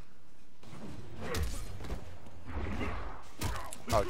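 Punches and kicks thud and crack in a fight.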